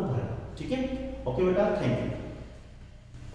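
A man speaks clearly and close into a microphone.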